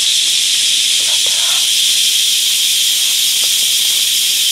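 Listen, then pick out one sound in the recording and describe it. Something rustles softly close by.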